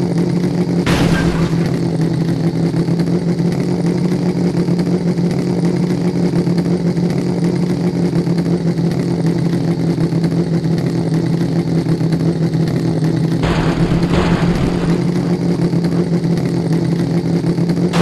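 An engine hums steadily as an off-road vehicle crawls along.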